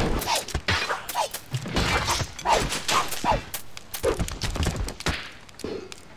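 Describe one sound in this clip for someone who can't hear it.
Weapons clash in a melee.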